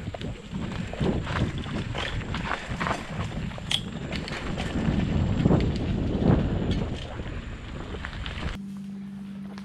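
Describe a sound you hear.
Bike tyres rattle and crunch over a bumpy dirt trail.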